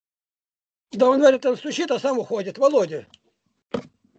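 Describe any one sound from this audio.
An elderly man speaks loudly and with animation over an online call.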